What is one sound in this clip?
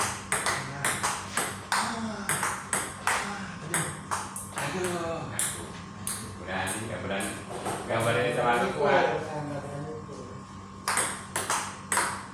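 A table tennis ball clicks rapidly back and forth off paddles and a table.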